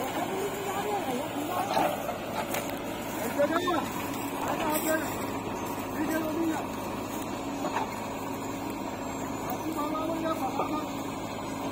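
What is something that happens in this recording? A digger bucket scrapes into soil.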